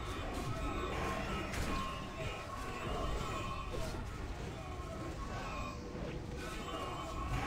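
Game spell effects crackle and zap.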